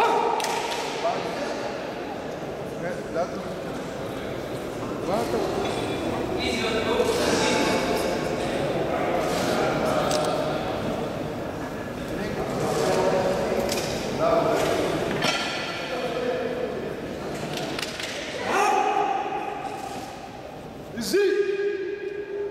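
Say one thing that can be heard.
Men shout encouragement loudly in a large echoing hall.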